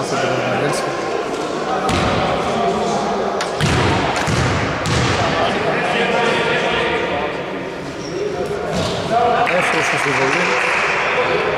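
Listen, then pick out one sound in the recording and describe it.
Men call out to each other across the court.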